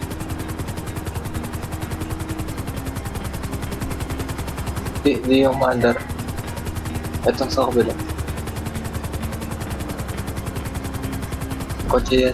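A light helicopter's rotor thrums in flight.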